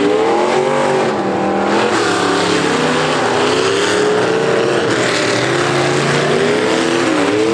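Car engines rev and roar loudly, rising and falling in pitch.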